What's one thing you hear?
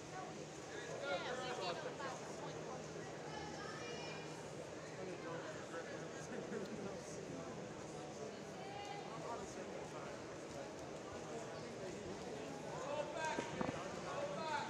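Spectators cheer and shout in a large echoing hall.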